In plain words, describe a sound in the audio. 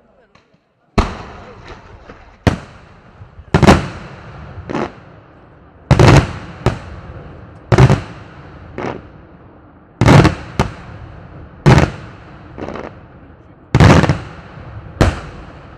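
Fireworks burst overhead with loud, sharp booms that echo away, one after another.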